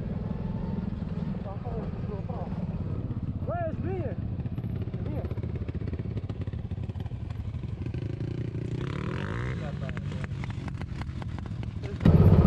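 A quad bike engine buzzes nearby.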